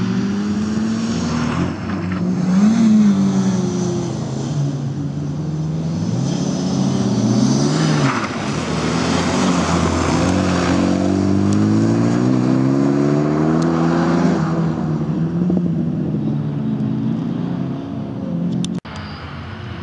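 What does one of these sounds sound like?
A small car's engine revs hard and changes gear.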